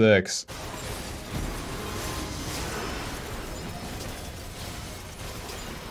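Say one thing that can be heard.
Video game sound effects clash and whoosh during a fight.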